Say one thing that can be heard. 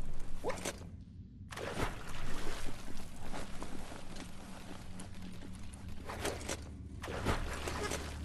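Water splashes as something wades and swims through it.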